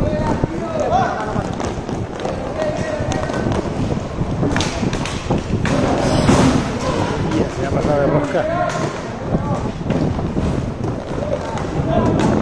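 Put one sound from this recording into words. Young players shout to each other across an open rink.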